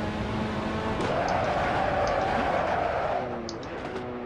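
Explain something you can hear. Tyres screech loudly through a corner.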